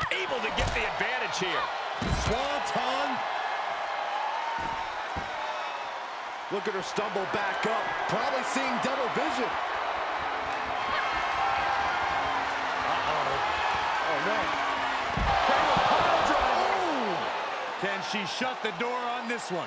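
A crowd cheers and shouts loudly throughout.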